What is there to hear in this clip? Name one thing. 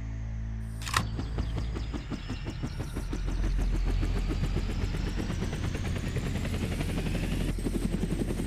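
Helicopter rotor blades thump, getting faster and faster.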